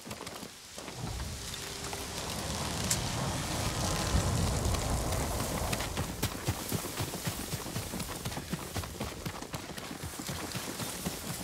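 Water rushes nearby.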